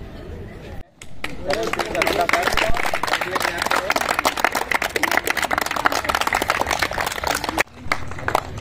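A group of children clap their hands in applause outdoors.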